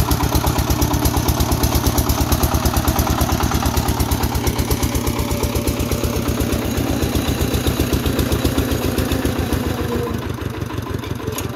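A single-cylinder diesel engine chugs loudly and steadily close by.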